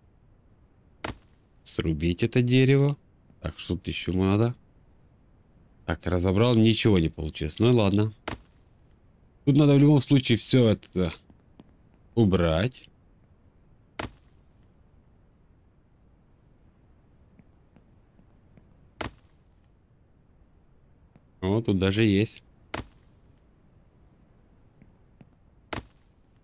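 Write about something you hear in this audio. An axe chops into a tree with sharp knocks.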